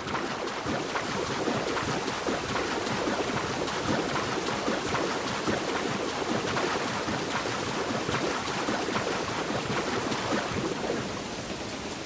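Water splashes and churns as a swimmer moves through it.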